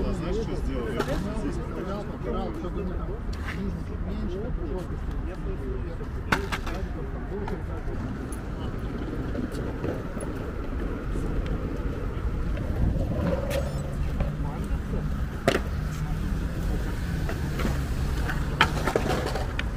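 Skateboard wheels roll and rumble on asphalt.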